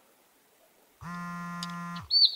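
A phone rings with a steady electronic tone.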